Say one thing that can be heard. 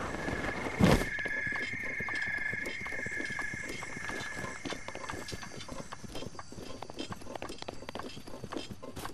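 Hands and feet scrape and tap against rough stone while climbing.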